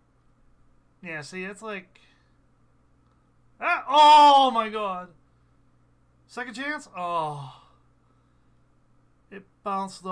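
A man talks with animation close to a microphone, in short bursts.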